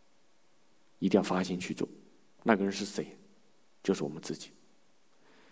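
A middle-aged man speaks calmly into a close microphone, in short phrases.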